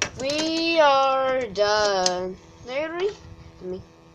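A small plastic toy taps down onto a hard table.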